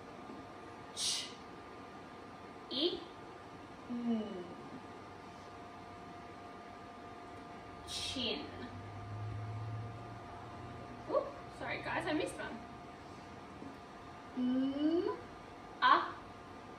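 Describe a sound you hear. A young woman speaks slowly and clearly, sounding out short words.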